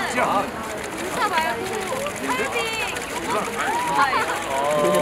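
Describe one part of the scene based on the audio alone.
Young women talk excitedly nearby.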